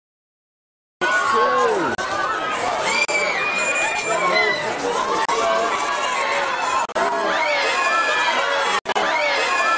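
A crowd of men and women cheer and talk excitedly all around.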